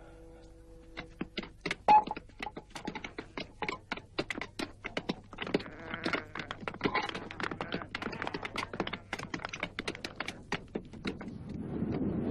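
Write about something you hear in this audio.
Hammers and mallets strike stone in quick, uneven blows.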